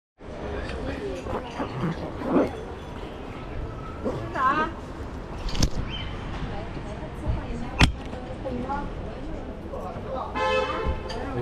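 Men and women talk casually nearby in a busy street.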